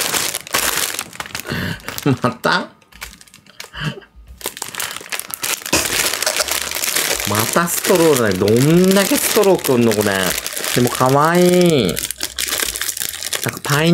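Plastic packaging crinkles in hands.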